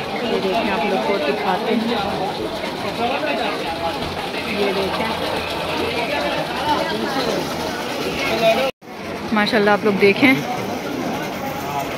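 A crowd of people talks loudly nearby.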